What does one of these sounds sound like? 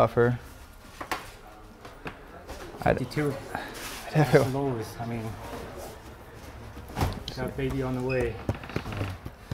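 A second man talks back in a casual voice.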